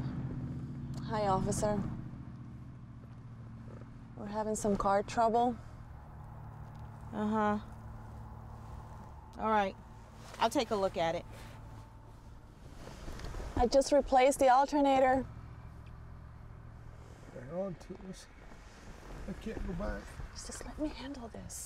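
A woman talks in short bursts close by.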